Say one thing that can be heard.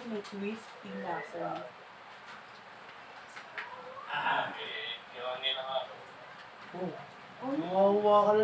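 Several adults chat and talk over one another close by.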